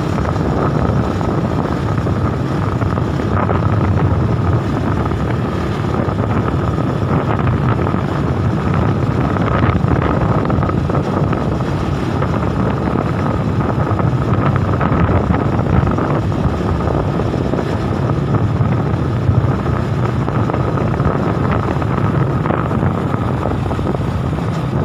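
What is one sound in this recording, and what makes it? Wind buffets a microphone loudly and steadily outdoors.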